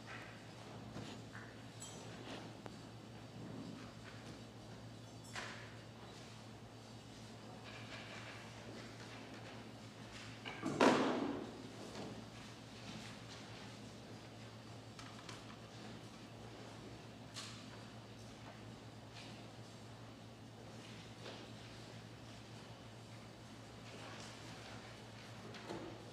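People shuffle and move about quietly in a large echoing room.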